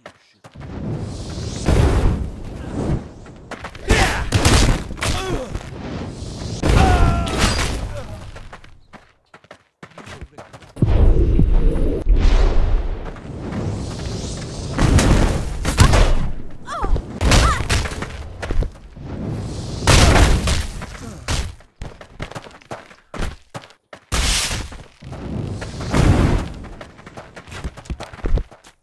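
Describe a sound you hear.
A fireball whooshes and bursts into flame.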